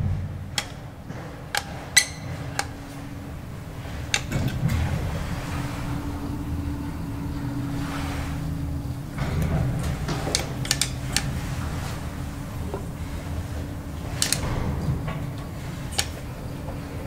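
A finger clicks an elevator push button.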